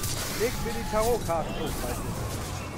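A fiery explosion bursts with a roar.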